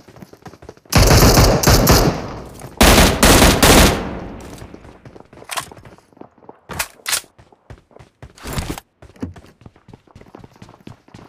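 Footsteps patter quickly on a hard roof.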